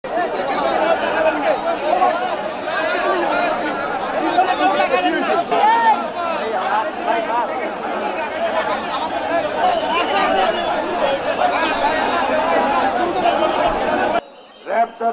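A large crowd of men shouts and talks loudly all at once, close by.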